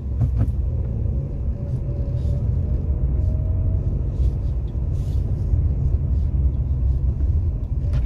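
Tyres roll over the road with a low, steady rumble.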